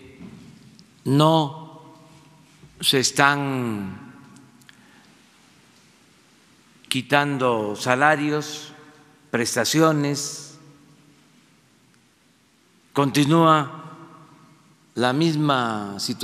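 An elderly man speaks slowly into a microphone, with long pauses, in a room with some echo.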